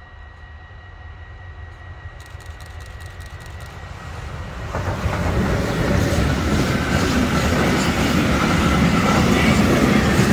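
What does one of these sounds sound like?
A freight train approaches and rumbles loudly past close by.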